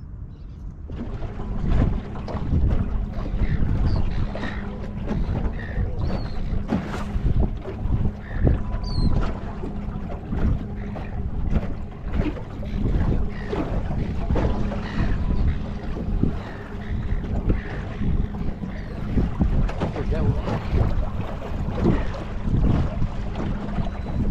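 A man talks calmly outdoors.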